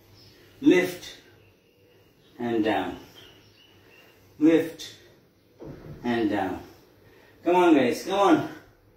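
A man speaks short words close by, pausing between each.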